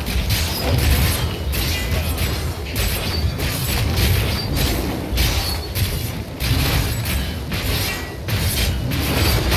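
Spell blasts crackle and burst in rapid bursts.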